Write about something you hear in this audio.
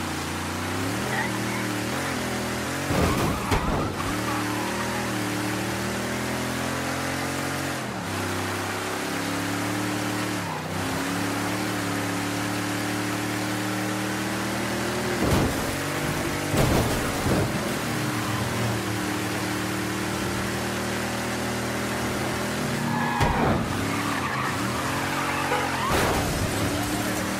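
A car engine roars steadily, its pitch rising and dropping as it shifts gears.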